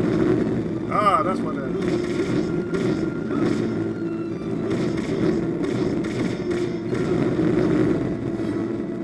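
A blade swishes and strikes in quick bursts.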